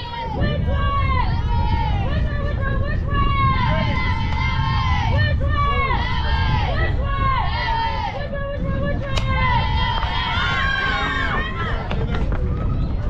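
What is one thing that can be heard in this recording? A group of young women chant and cheer from a distance.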